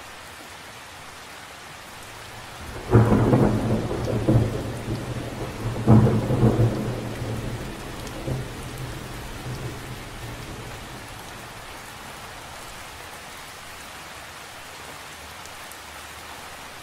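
Rain patters steadily on the surface of a lake.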